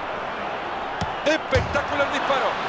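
A football is struck with a thud.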